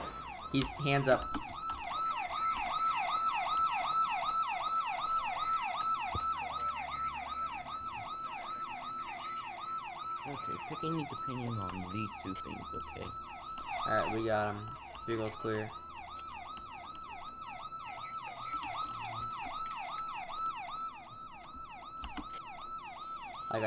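A police siren wails in a fast, steady yelp.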